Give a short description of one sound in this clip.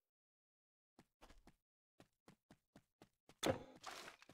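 Footsteps tread on the ground at an even pace.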